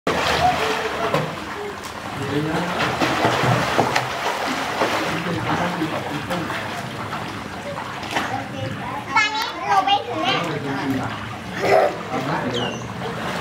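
Children splash and kick in the water.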